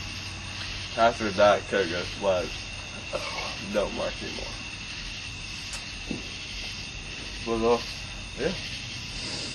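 A young man coughs.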